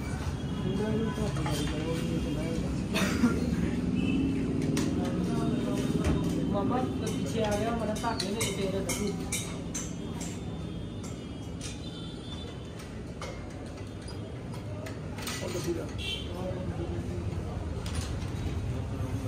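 Metal tools clink and tap against a motorcycle's parts.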